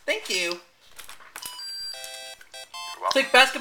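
A short electronic jingle of bright tones plays.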